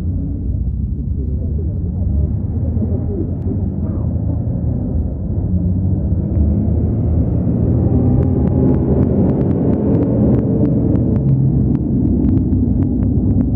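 A tractor engine roars loudly as it pulls a heavy load.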